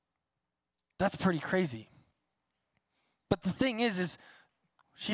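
A man speaks through a microphone with animation in a large echoing hall.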